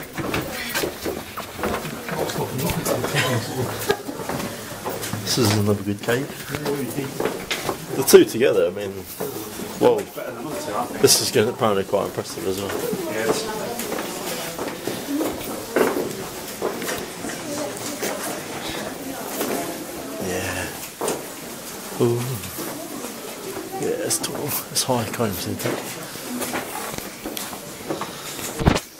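A young man talks close by, with a slight echo.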